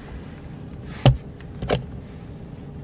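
A plastic cap clicks.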